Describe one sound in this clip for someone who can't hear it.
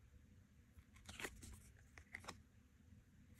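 Cards slide and tap softly against each other.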